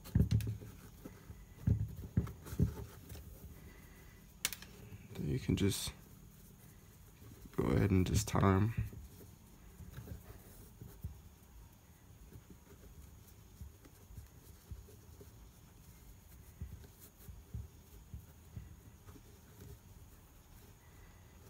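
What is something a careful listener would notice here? Shoelaces rustle and slap softly as they are pulled through eyelets.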